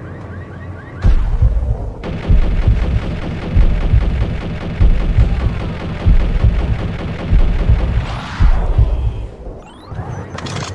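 A rifle fires rapid bursts that echo.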